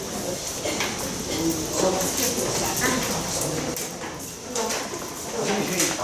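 Several women chatter nearby.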